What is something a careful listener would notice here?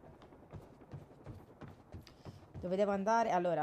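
Footsteps run quickly across a wooden floor.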